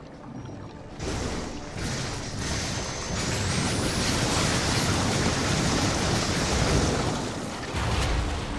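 A crackling energy blast roars loudly.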